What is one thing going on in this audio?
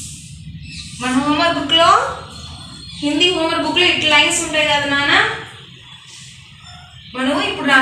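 A woman speaks clearly and calmly, as if teaching.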